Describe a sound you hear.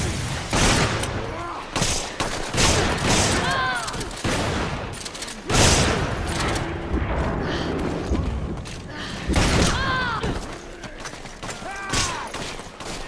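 Shotguns fire loud, booming blasts.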